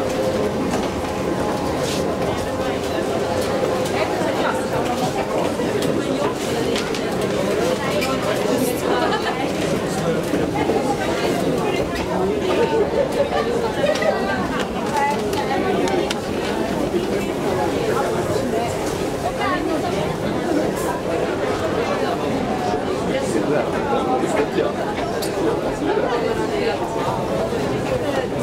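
A crowd of people murmurs and chatters, echoing in a large hall.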